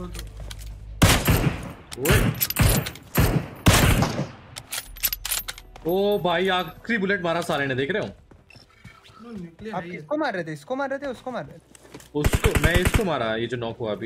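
Rifle shots crack loudly, some in rapid bursts.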